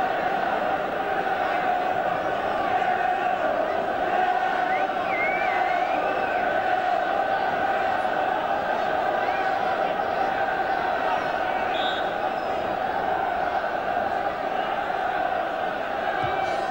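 A large stadium crowd roars and chatters steadily outdoors.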